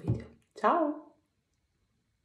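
A woman speaks briefly and warmly, close to a phone's microphone.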